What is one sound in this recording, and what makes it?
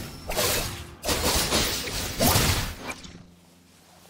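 A loud whoosh sweeps past.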